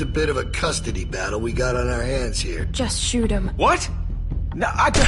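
A man pleads with animation, close by.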